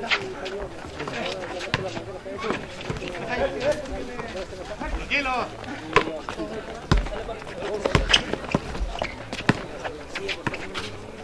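A crowd of men talk and shout outdoors.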